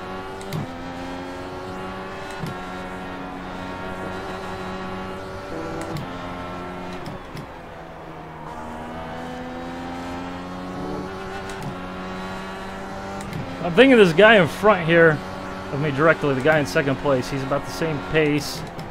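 A racing car engine whines at high revs and drops in pitch with each gear change.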